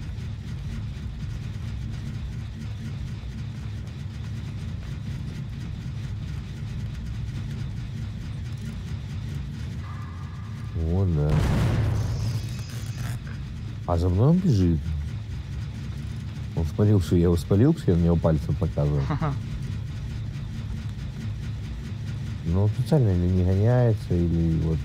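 A generator engine rumbles steadily.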